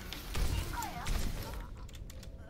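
Gunfire blasts loudly in a video game.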